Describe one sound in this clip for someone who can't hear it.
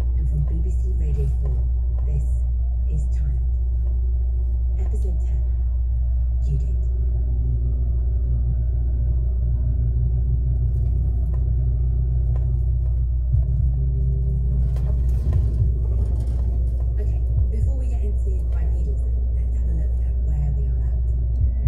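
A vehicle's engine hums steadily while driving.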